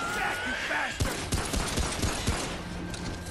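A gun fires several sharp shots.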